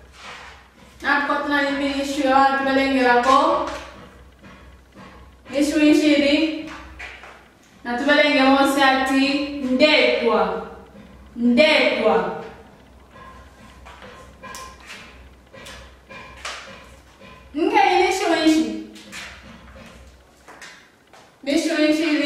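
A young woman speaks clearly and slowly, as if teaching, close by.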